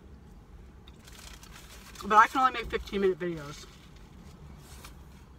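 A woman chews food quietly.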